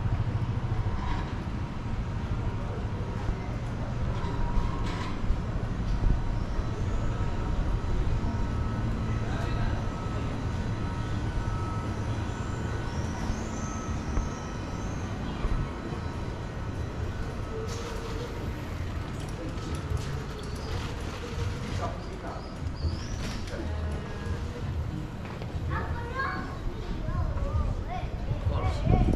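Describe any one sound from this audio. Footsteps tap on a stone street.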